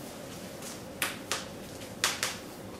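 Scissors snip close by.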